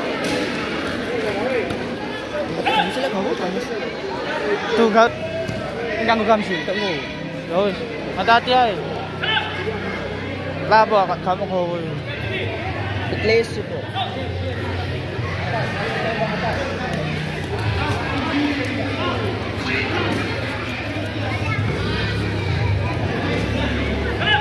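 A crowd of children chatters and shouts in a large echoing hall.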